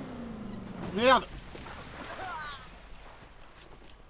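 Water splashes loudly.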